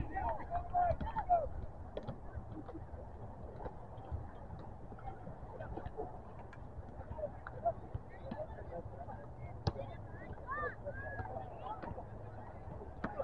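Young players shout and call out to each other across an open field in the distance.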